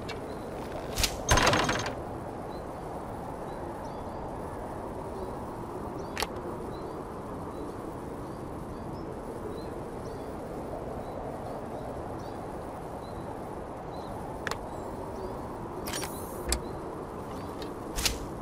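A bowstring twangs as an arrow whooshes away.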